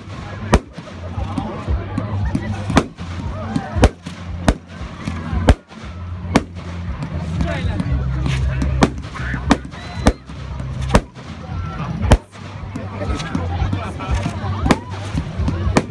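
Firework rockets whistle and fizz as they launch.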